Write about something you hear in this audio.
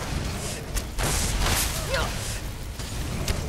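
A spell crackles and whooshes loudly.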